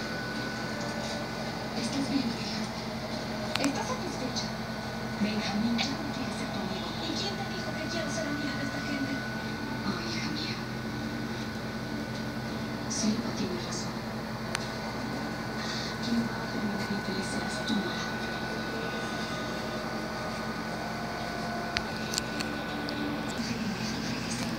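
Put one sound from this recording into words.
A baby babbles softly close by.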